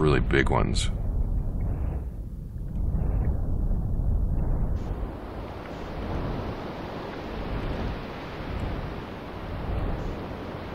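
A deep storm wind roars and rumbles steadily.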